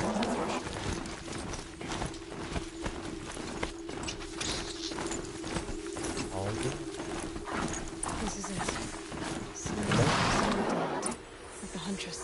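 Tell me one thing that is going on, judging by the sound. Metal hooves clop steadily on snowy ground.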